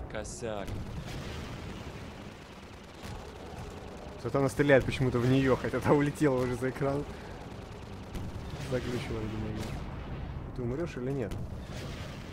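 A rocket launches with a whoosh.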